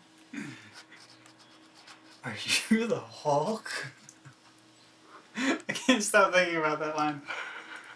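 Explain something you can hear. A young man laughs softly close to a microphone.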